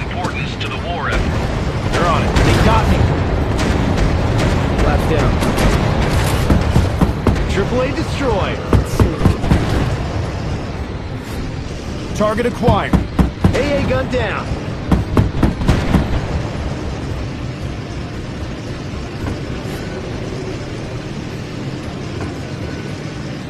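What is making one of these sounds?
A propeller plane's engine roars steadily.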